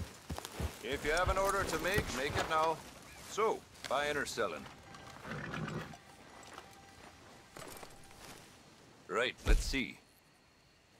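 A man speaks in a gruff, animated voice close by.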